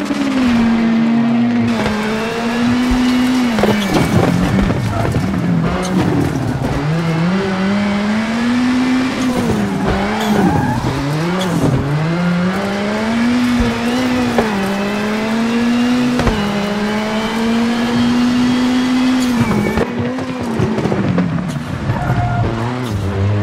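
Tyres skid and scrape on loose gravel.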